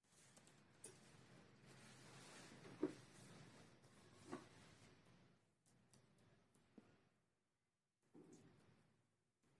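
Small pieces tap and click as they are placed on a board.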